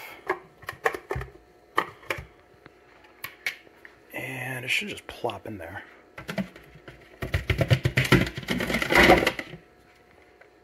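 Plastic containers knock and clatter against each other in a sink.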